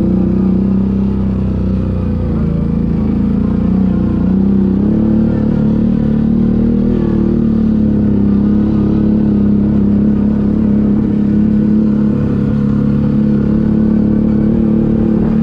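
A quad bike engine drones steadily up close.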